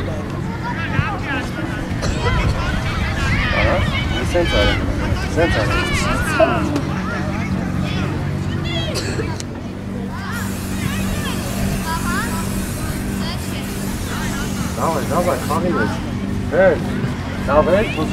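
Children shout and call out to each other outdoors.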